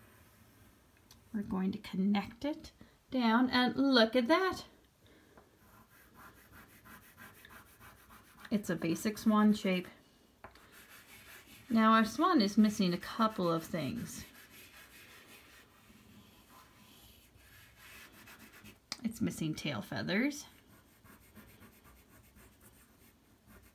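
A crayon scratches and rubs across paper.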